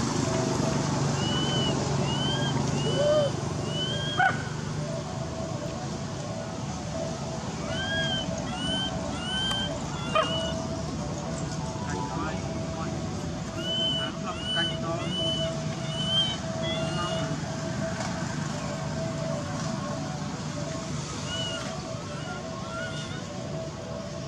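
A baby monkey squeaks in short, high, rising-and-falling cries.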